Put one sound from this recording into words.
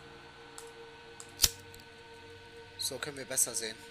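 A lighter flicks with a sharp click.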